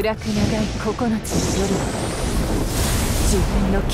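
A burst of energy crackles and hums.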